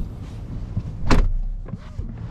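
A car door clunks open.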